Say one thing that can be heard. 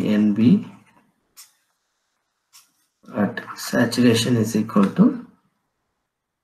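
A young man speaks calmly and close to a microphone, in short bursts with pauses.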